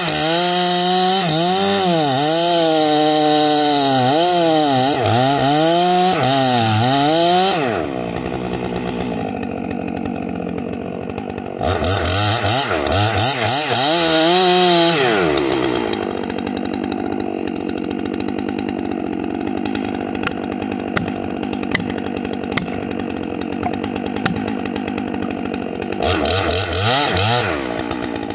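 A chainsaw revs up and down loudly while cutting through a log.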